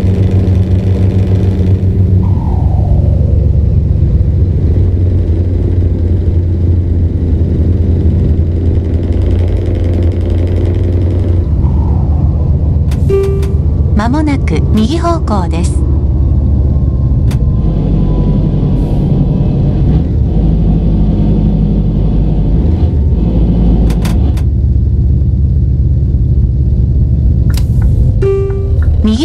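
A truck engine drones steadily at low revs.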